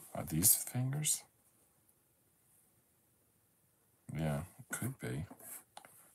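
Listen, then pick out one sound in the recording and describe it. Puzzle pieces tap and slide softly on a table.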